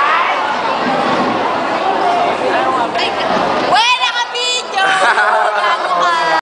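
A crowd of young people chatters loudly close by.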